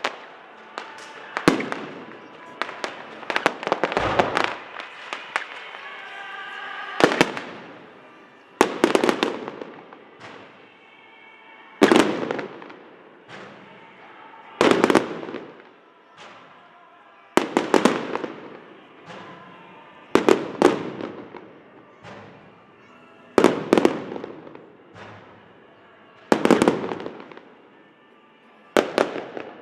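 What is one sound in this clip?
Fireworks burst with loud booming bangs that echo off surrounding buildings.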